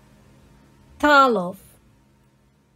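A young woman lets out a short, drawn-out exclamation.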